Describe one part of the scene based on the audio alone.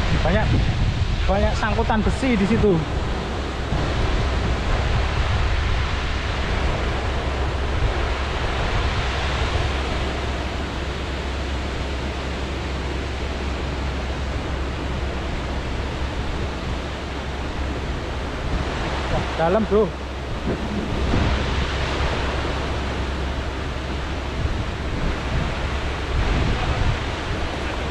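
Water rushes and splashes steadily over a weir nearby.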